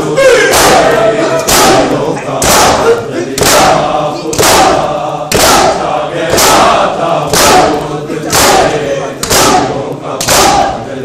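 A crowd of men beat their chests in a steady rhythm, with loud slaps echoing through a hall.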